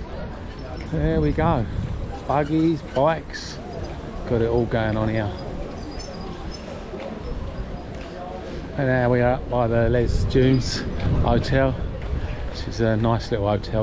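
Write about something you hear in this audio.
Passers-by talk loudly close by.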